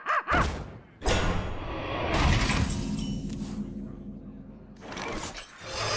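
A short game fanfare plays with a bright swell.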